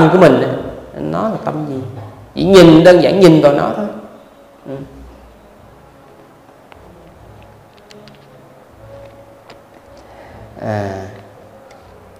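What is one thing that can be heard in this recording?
An elderly man speaks slowly into a microphone, with pauses.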